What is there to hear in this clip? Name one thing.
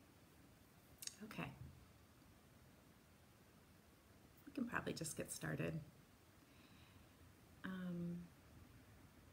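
A woman speaks softly and close by, in short bursts with pauses.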